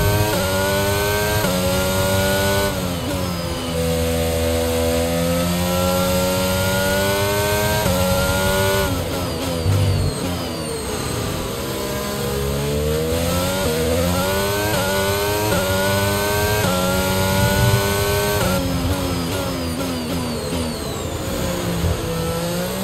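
A racing car engine screams at high revs, rising through the gears and dropping as it brakes.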